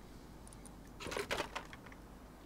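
A wooden chest opens with a clatter.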